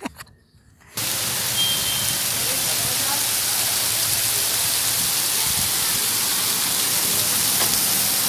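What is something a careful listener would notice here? Water splashes steadily down a rock face.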